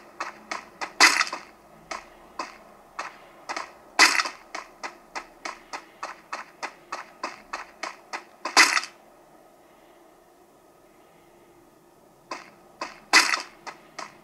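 A sniper rifle fires in a mobile game.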